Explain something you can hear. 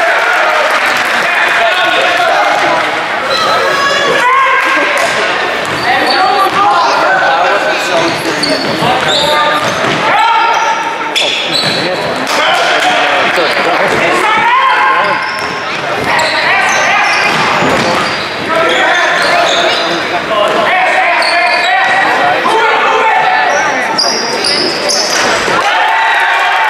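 Spectators talk and cheer loudly close by in an echoing gym.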